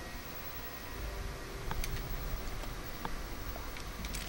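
Short electronic clicks sound as a menu opens.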